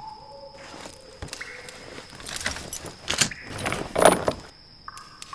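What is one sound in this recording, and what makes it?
Metal chains clank and rattle as a shackle is pulled open.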